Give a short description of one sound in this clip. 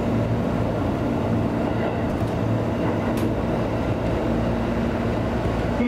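Train wheels clack over the rail joints.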